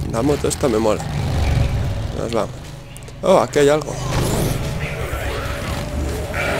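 A motorcycle engine rumbles.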